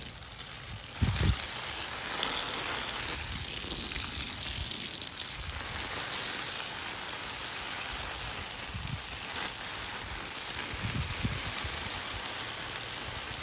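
Water from a garden hose sprays and splashes onto leafy plants and soil.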